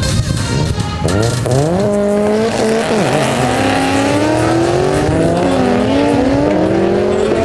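A car engine revs hard and rises in pitch as the car pulls away.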